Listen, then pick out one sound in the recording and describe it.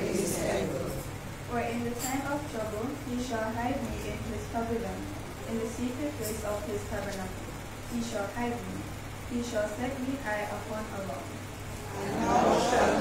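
A young woman speaks into a microphone through loudspeakers in an echoing hall.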